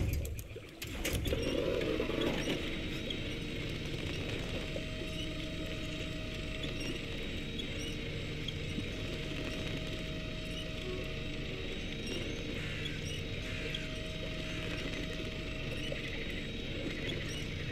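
Water sloshes around a vehicle's wheels.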